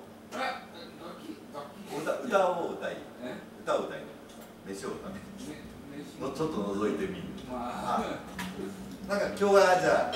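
A man talks through a loudspeaker.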